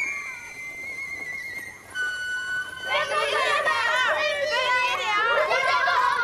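A flute plays a high, wavering melody.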